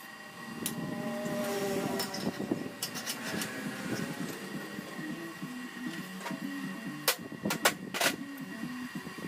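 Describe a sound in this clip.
Metal pieces clank and knock against each other.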